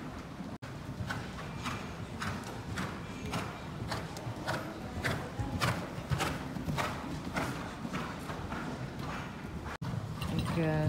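Horse hooves thud softly on sand in a large echoing hall.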